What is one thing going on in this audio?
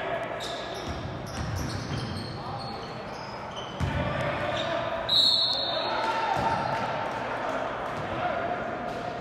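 A crowd of spectators murmurs and cheers in an echoing gym.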